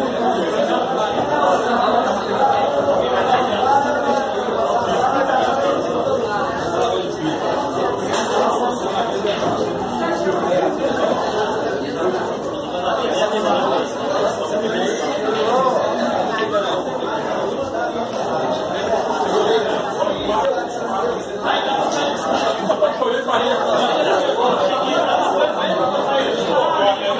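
A crowd of men talks and chatters loudly nearby.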